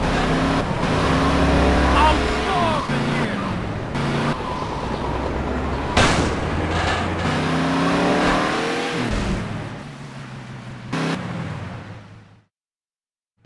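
A car engine roars and revs as the car speeds along.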